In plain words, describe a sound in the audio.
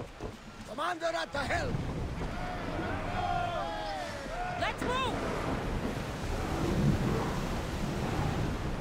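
Waves splash and rush against a ship's hull.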